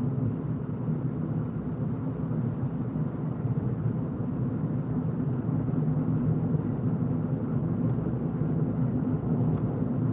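Tyres roll over the road surface with a low rumble.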